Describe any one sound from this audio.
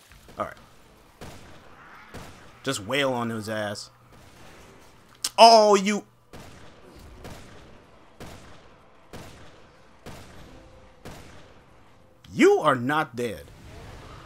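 A pistol fires shot after shot.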